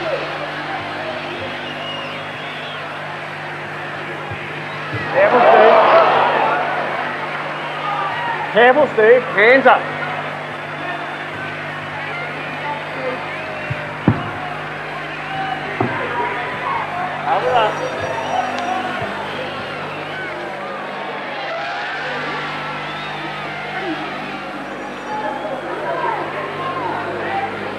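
A crowd cheers and shouts in a large hall, swelling loudly for a moment.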